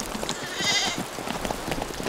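A horse gallops over dry ground.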